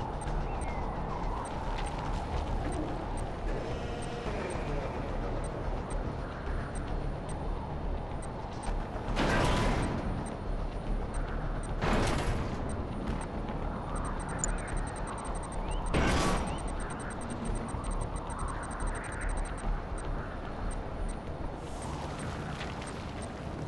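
Energy beams zap in short, sharp bursts.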